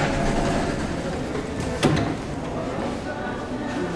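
Footsteps step out onto a hard floor.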